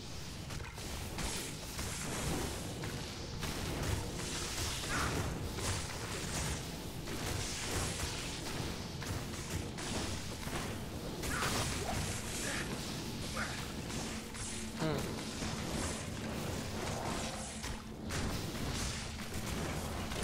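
Magic spells crackle and burst in a video game battle.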